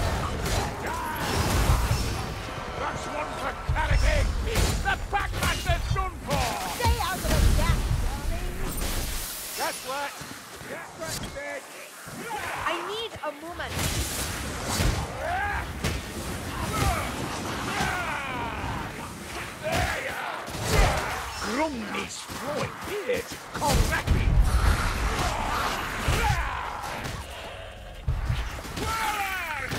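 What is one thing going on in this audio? Blades slash and thud into flesh.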